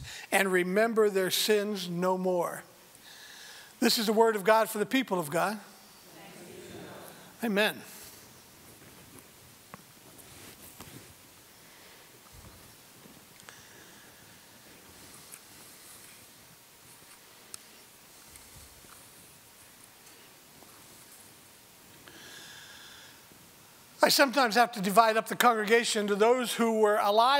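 A man speaks into a microphone through loudspeakers in an echoing hall, with long pauses.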